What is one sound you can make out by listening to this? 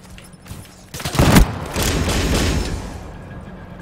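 A rifle fires a quick burst of gunshots in a video game.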